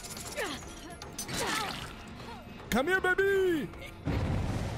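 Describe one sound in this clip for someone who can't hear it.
A young man talks with animation into a microphone, close by.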